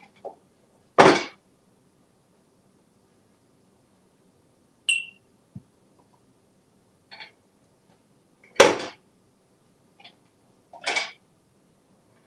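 A parrot squawks loudly in short bursts.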